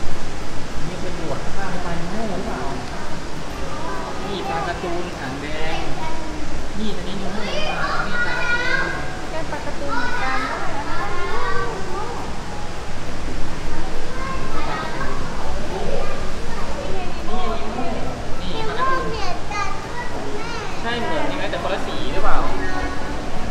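Adult voices murmur in a large echoing hall.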